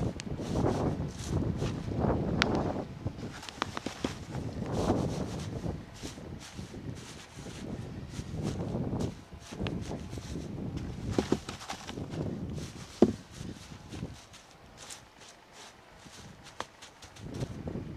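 Hands rustle and spread wood shavings.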